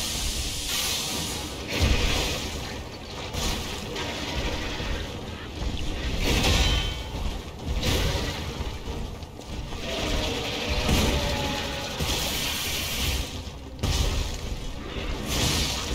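A heavy weapon swings and strikes with loud impacts.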